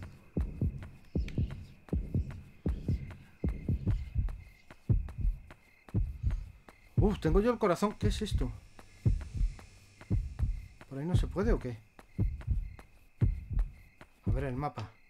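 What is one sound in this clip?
Footsteps thud steadily on pavement.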